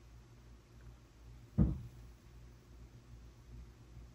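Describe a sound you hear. A game piece is set down on a board with a light tap.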